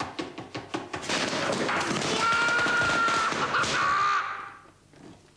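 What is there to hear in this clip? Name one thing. A man screams loudly.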